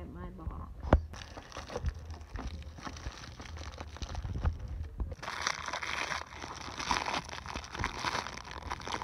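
Plastic packaging crinkles and rustles close by.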